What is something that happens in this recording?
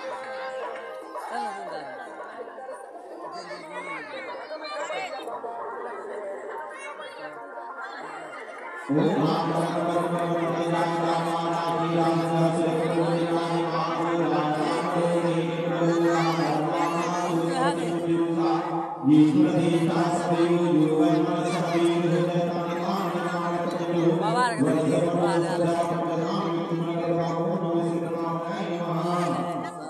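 A man chants prayers nearby.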